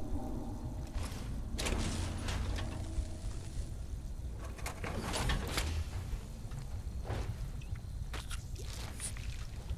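Heavy metal armour clanks and hisses as it opens and closes.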